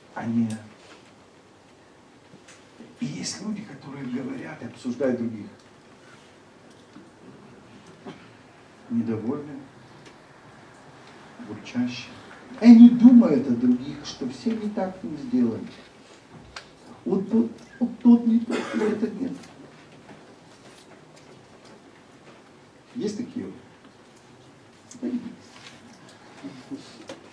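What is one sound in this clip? A middle-aged man speaks with animation through a microphone, in short bursts with pauses, in a reverberant hall.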